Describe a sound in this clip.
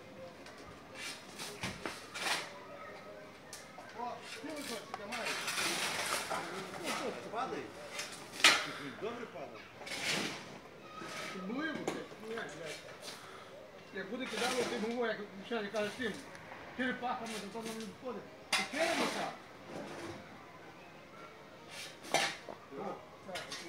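Shovels scrape on a metal truck bed.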